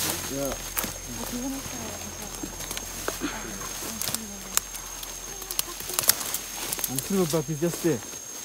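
Leaves and twigs rustle and snap underfoot.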